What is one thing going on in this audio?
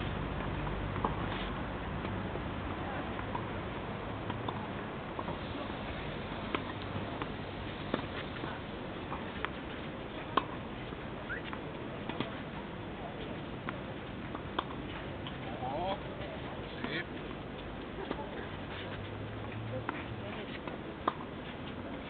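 Tennis balls are struck with rackets, each hit a sharp pop.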